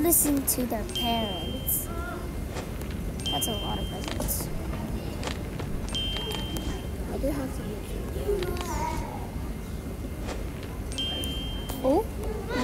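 A short electronic chime sounds several times.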